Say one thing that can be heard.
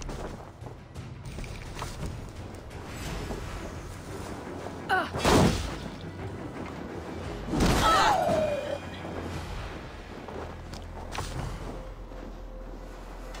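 Footsteps crunch softly through snow.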